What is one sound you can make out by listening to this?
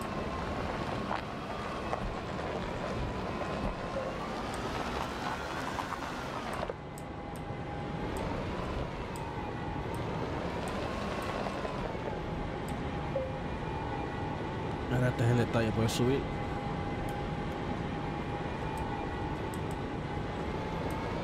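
A small vehicle's motor hums steadily, its pitch rising and falling as it drives.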